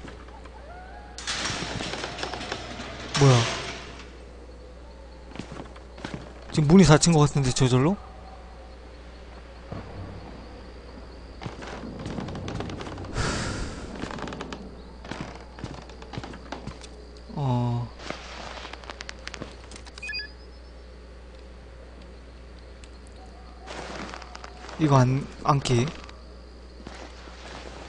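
Footsteps scuff slowly on a hard floor.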